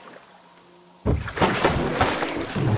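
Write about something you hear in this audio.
Water splashes loudly as a creature bursts out beside a boat.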